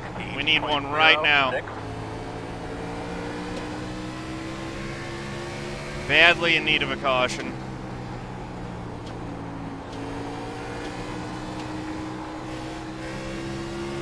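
A race car engine drones steadily, its pitch slowly rising and falling.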